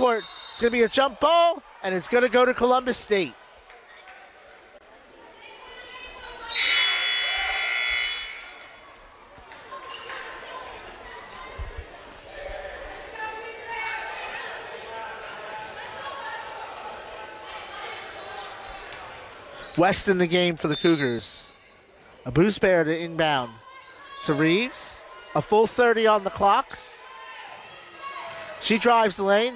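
A crowd murmurs and cheers in the stands.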